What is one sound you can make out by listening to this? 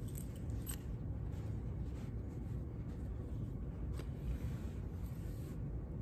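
Cloth rustles as it is folded.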